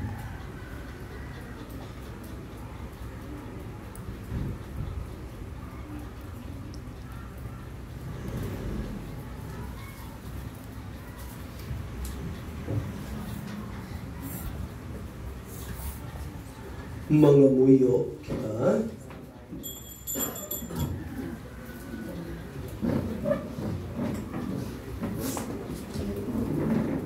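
A man speaks calmly into a microphone in a room.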